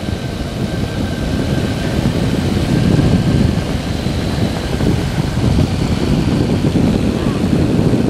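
Wind rushes loudly past, buffeting outdoors.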